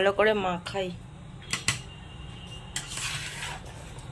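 A metal spoon scrapes and clinks against a steel bowl while mixing.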